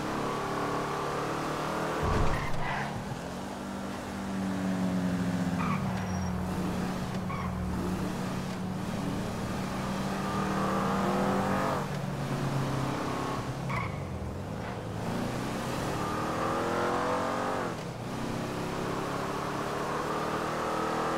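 A car engine roars and revs up through the gears, dropping in pitch at each gear change.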